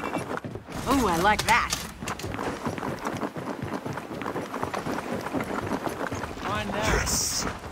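Heavy boots run over stone.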